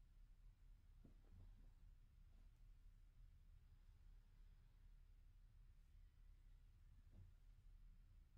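A mattress rustles and thumps softly as a person shifts on it.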